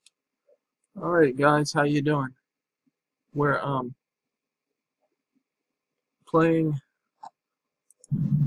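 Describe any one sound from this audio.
A man speaks casually into a nearby microphone, in short bursts.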